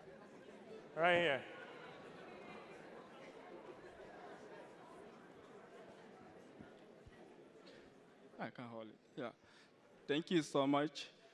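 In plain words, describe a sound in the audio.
A man speaks slowly and with emphasis through a microphone in a large hall.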